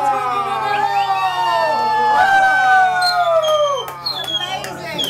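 A group of men and women cheer and sing loudly together.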